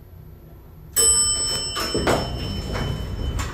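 Elevator doors slide open with a clatter.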